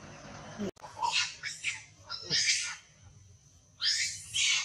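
A young monkey shrieks and squeals loudly.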